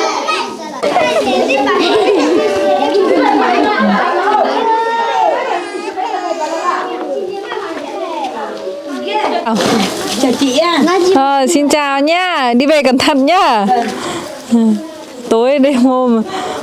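Young children chatter and call out excitedly nearby.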